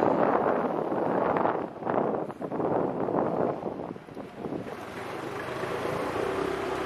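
Wind buffets the microphone of a moving motorcycle.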